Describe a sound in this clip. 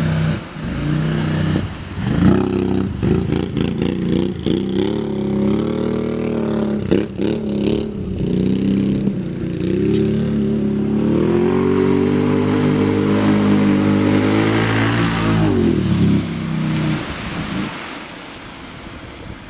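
Water splashes and sprays around churning wheels.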